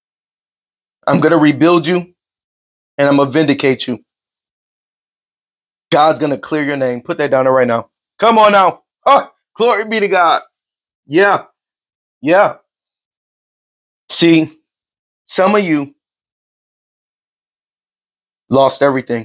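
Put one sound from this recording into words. A man speaks calmly and close to a microphone, in short phrases with pauses.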